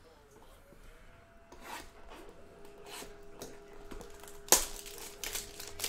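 Plastic wrap crinkles and crackles as hands handle a box.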